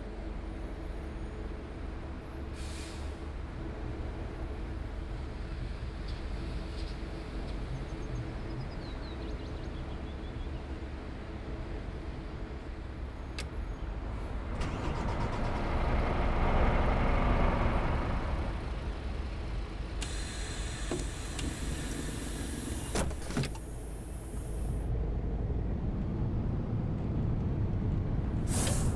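A bus engine hums steadily at low pitch.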